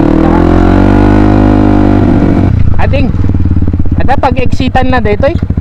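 A motorcycle engine runs close by with a steady putter.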